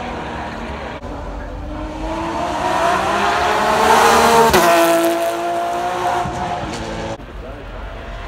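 A second racing car roars past with a high-pitched engine wail.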